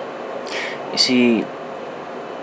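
A man close by lets out a short, amused vocal sound.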